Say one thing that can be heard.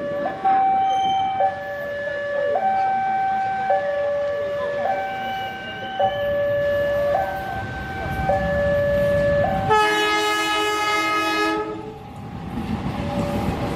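A diesel locomotive rumbles as it approaches.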